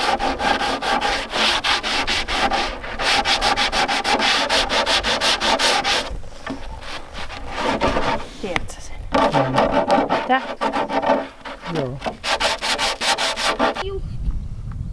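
A sanding block rubs back and forth on wood.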